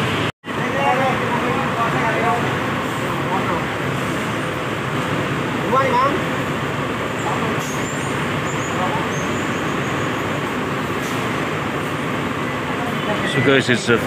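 Several men talk close by.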